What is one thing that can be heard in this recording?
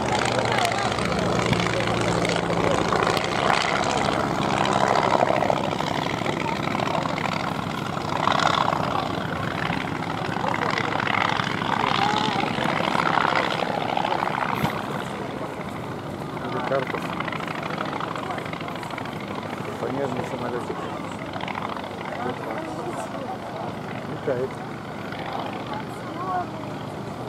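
A propeller engine drones overhead, rising and falling as a biplane loops and turns.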